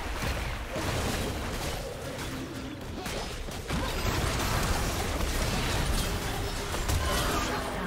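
Spell blasts crackle and burst in a busy fantasy battle.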